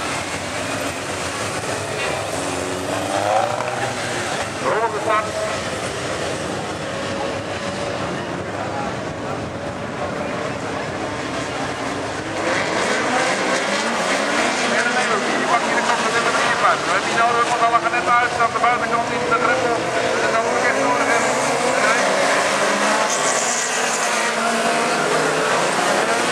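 Race car engines roar and rumble around a dirt track.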